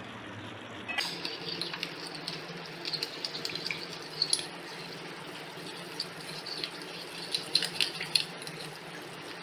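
A spoon stirs liquid in a cup, clinking and scraping rapidly.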